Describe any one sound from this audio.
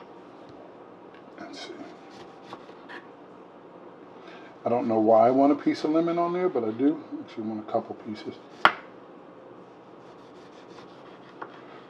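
A knife slices through a lemon and taps on a wooden board.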